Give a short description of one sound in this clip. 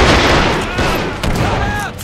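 A tank gun fires a sharp shot.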